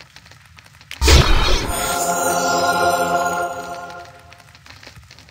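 A game menu plays a loud ringing chime effect.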